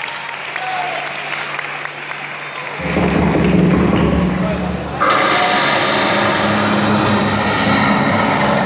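A large crowd chatters and cheers in an echoing hall.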